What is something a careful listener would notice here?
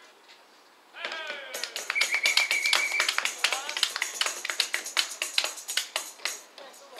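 People clap their hands rapidly.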